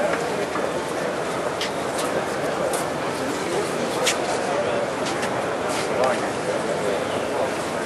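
A crowd murmurs indoors in a large hall.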